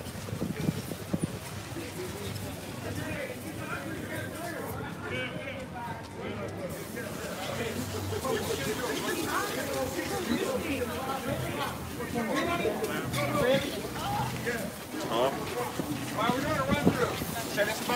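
Several people talk and chatter nearby, outdoors.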